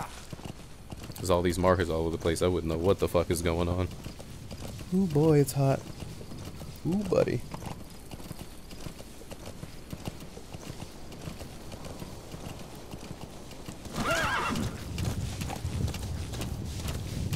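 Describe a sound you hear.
A horse gallops over rocky ground with steady hoofbeats.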